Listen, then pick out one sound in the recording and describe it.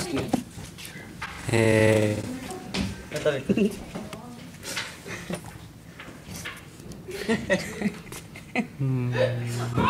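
A young man laughs and talks close by.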